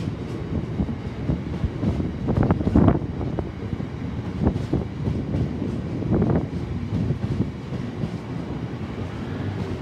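A long freight train rumbles steadily along the track below.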